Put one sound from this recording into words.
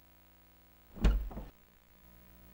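A door creaks and swings open.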